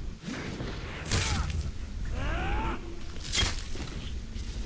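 A blade slashes and strikes a body with a heavy thud.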